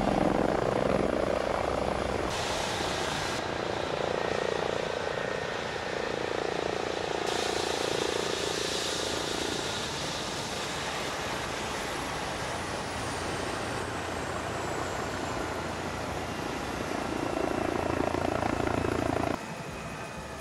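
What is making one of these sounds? A helicopter engine hums steadily nearby.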